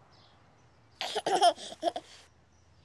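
A baby giggles and laughs close by.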